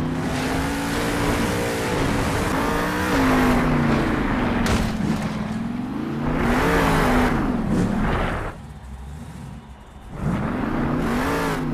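Big tyres churn and spray dirt.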